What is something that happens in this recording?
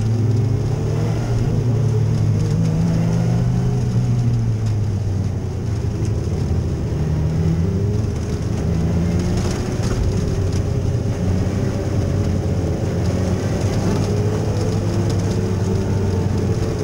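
A dirt track modified race car engine roars at full throttle, heard from inside the cockpit.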